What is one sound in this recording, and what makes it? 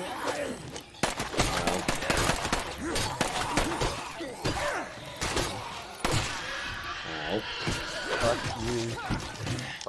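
Heavy blows thud against bodies in a scuffle.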